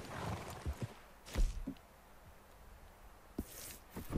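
A horse walks with hooves thudding on snow.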